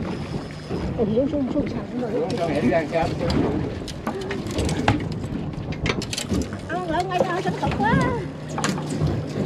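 A woman talks excitedly nearby.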